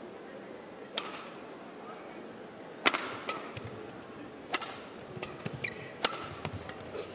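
A shuttlecock is struck sharply by rackets in a rally.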